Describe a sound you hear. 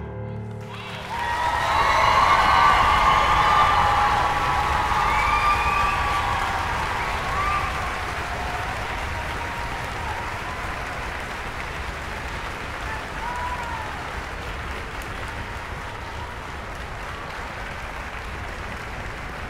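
A large audience applauds loudly in a hall.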